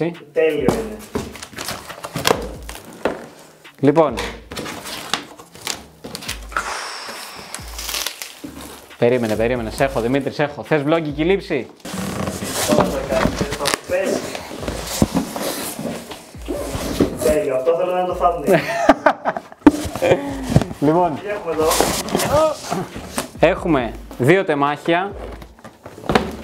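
Cardboard flaps rustle and scrape.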